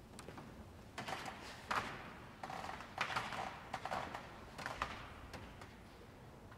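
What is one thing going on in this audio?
Footsteps tap on a hard floor, echoing in a large hall.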